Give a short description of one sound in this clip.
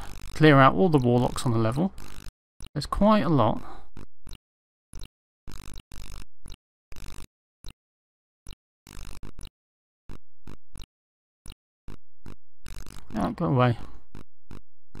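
Electronic game sound effects chirp and sweep in short bursts.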